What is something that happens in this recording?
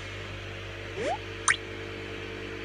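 A short chime sounds from a video game.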